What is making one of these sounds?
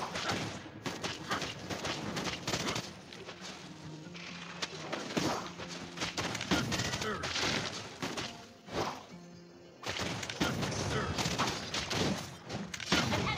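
Game sound effects of spells and hits play in quick bursts.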